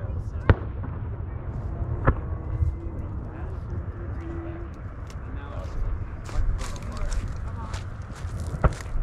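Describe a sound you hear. Fireworks boom in the distance.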